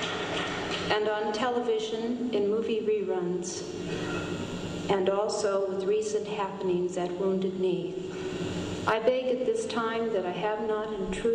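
A woman sings through a loudspeaker in a large echoing hall.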